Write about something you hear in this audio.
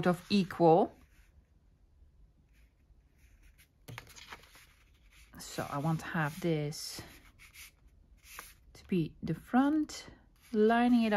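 Hands rub and smooth a sheet of paper.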